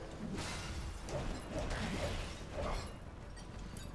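Blades slash and clang with sharp icy bursts.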